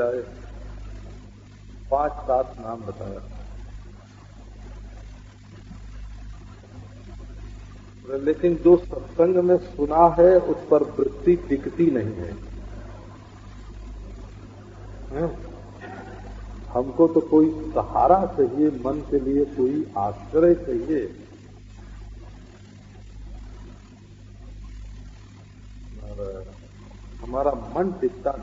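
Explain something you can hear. An elderly man speaks calmly, heard through a microphone.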